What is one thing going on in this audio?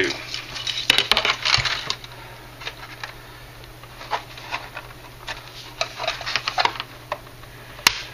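Plastic model parts click and tap as hands fit them together.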